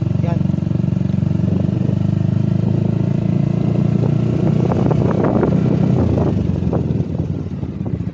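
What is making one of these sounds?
A single-cylinder scooter pulls away and accelerates.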